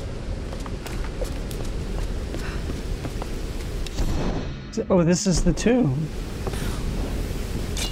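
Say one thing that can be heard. A torch flame flickers and crackles close by.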